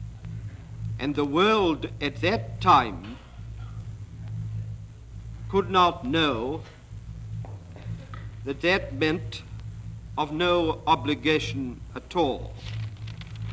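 A middle-aged man speaks calmly in short phrases.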